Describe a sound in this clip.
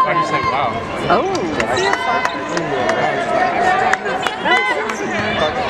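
A basketball bounces on the court.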